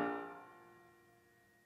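A flute's last note fades quickly.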